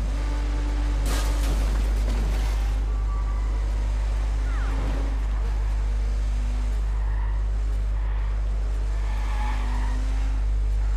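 Tyres screech as a car skids around a bend.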